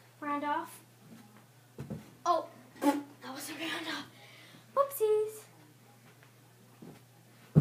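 Bare feet thump on a carpeted floor during cartwheels.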